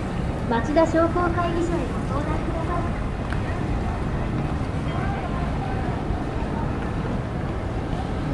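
Passers-by chatter nearby and in the distance on a busy street.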